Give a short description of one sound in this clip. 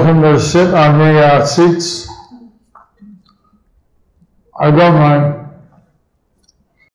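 A man sings slowly into a close microphone, with long held notes and pauses.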